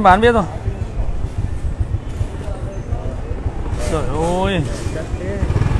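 A scooter engine idles close by with a low, steady rumble.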